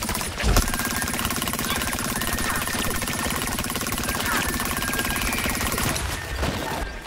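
A laser beam hums steadily.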